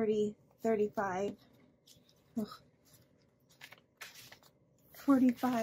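Paper banknotes rustle and crinkle as they are handled close by.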